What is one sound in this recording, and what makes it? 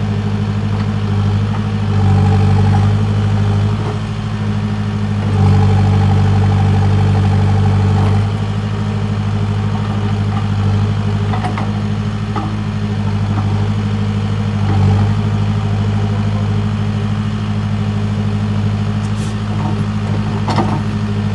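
A diesel engine rumbles steadily and revs up at times.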